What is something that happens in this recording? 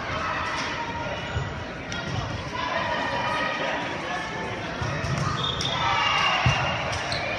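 Young men call out and talk in a large echoing hall.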